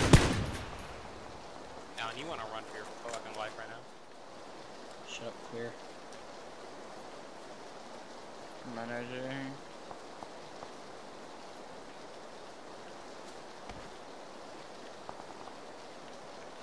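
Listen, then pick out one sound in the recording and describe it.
Rain falls on grass outdoors.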